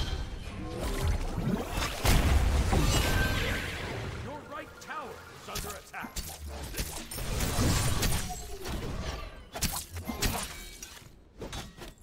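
Magic blasts and impacts crackle and boom in a game battle.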